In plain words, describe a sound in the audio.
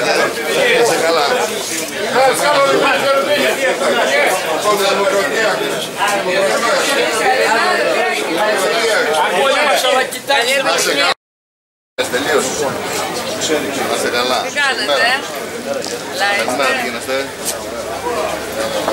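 Several men and women chatter in a crowd around.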